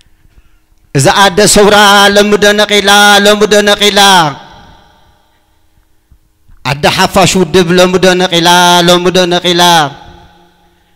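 A man sings loudly through a microphone, holding long wavering notes.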